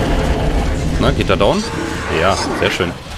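A creature screeches and snarls.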